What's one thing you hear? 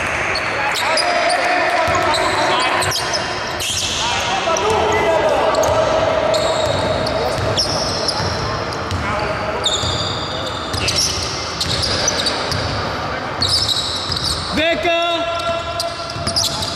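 A basketball bounces on the court floor.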